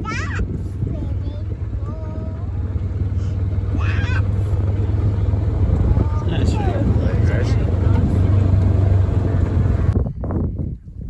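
A vehicle engine hums steadily while driving over rough ground.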